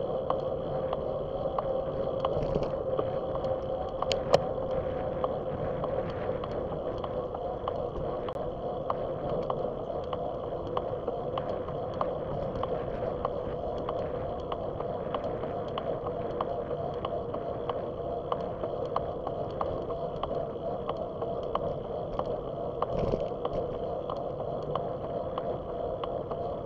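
Wind rushes steadily past a bicycle rider.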